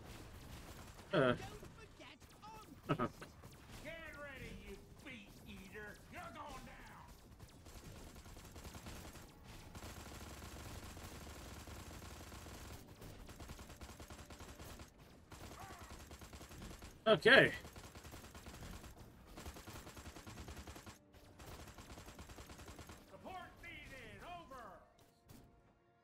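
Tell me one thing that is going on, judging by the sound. Gunfire and blasts crackle as game combat rages.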